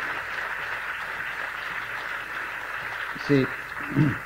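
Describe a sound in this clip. An audience applauds steadily in a large space.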